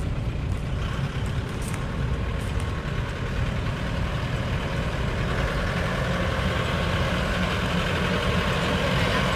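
A truck engine rumbles nearby, growing louder as it approaches.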